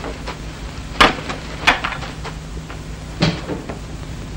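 Heavy blows thud against wood.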